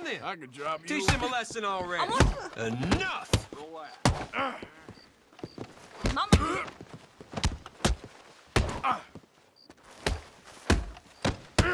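Blows thud in a scuffle.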